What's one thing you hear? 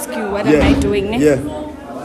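A young man talks back close by.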